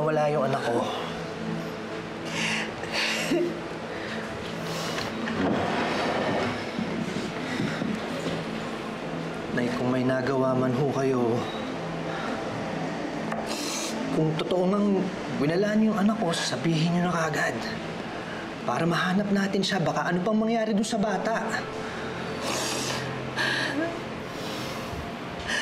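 A middle-aged woman sobs and weeps.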